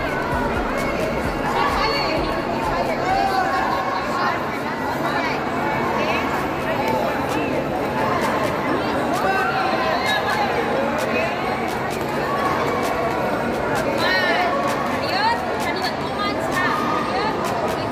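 Young children shout and squeal with high voices.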